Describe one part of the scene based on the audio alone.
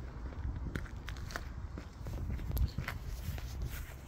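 Footsteps walk across paving outdoors.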